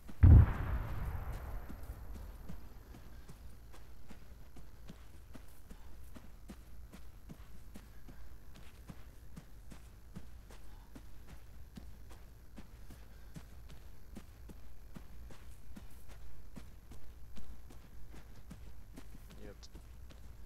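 Footsteps crunch steadily on dry sandy ground.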